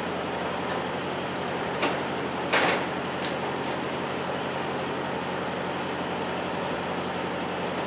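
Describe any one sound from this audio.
An electric fan whirs steadily close by.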